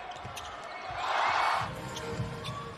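A crowd cheers briefly in a large echoing hall.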